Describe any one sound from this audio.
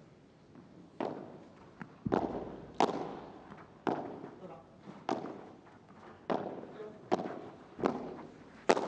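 Padel rackets strike a ball back and forth with sharp, hollow pops in a large echoing hall.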